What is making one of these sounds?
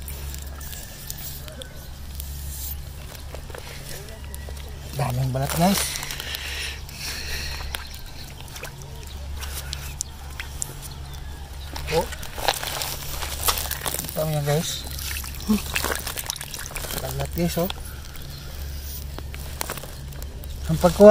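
Fingers scrape and dig in wet sand.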